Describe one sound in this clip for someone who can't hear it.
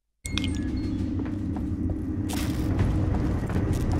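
Footsteps clang on metal stairs.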